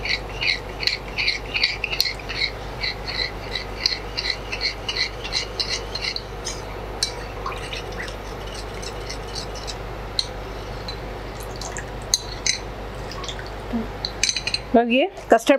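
A spoon whisks a batter briskly in a glass bowl, clinking rhythmically.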